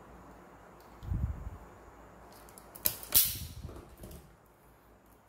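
Cables rustle and scrape as they are handled.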